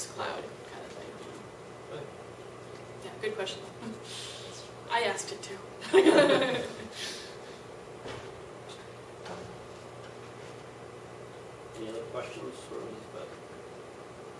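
A woman speaks in short bursts, heard from a distance in a room.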